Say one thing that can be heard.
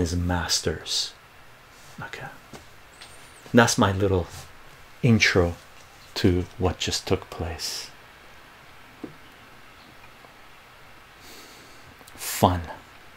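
A middle-aged man speaks calmly and clearly into a close microphone, with pauses.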